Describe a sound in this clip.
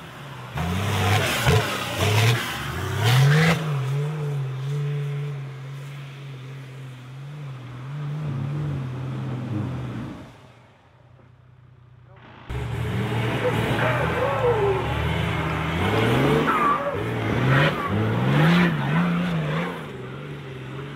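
An off-road truck's diesel engine roars and revs hard as it climbs.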